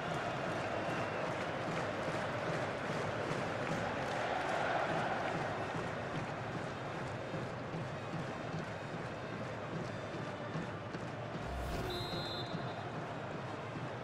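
A large stadium crowd roars and cheers loudly throughout.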